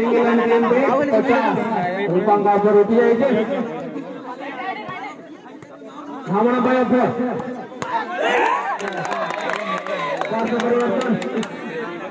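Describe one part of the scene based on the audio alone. A volleyball is struck hard with a slap.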